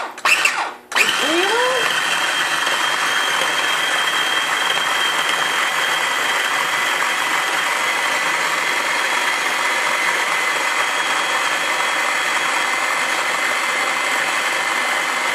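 A small electric blender spins up and whirs loudly and steadily.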